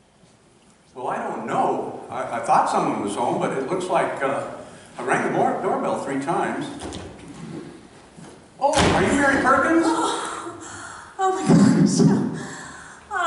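A woman speaks through a microphone and loudspeakers in a large echoing hall.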